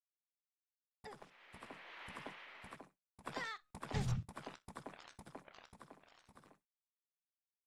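Video game sound effects whoosh and clatter.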